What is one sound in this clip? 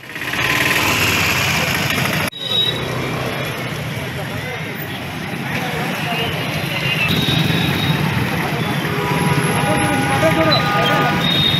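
A crowd of men shout and talk loudly outdoors.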